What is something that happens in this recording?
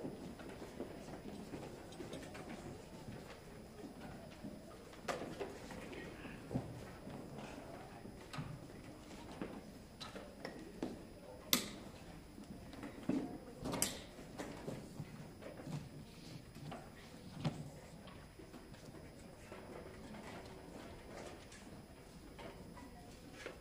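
People murmur and chat quietly in a large echoing hall.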